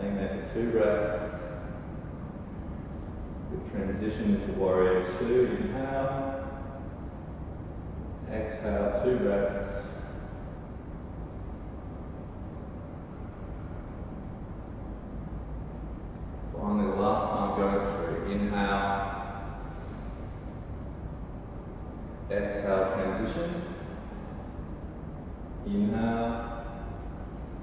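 A man speaks calmly in short phrases, close by in a quiet room.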